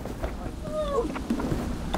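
A plastic tarp rustles as a man pushes through it.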